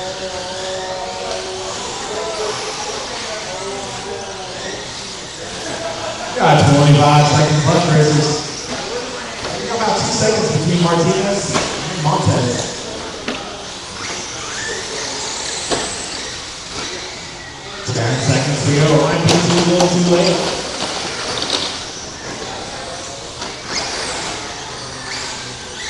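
Small electric race cars whine as they speed around a track.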